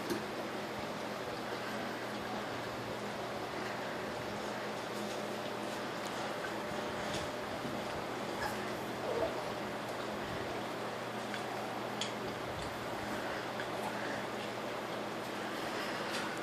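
Puppies lap and slurp food from bowls.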